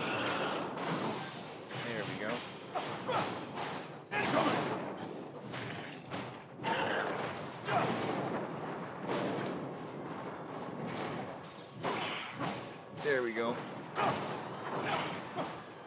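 Electric blasts crackle and boom.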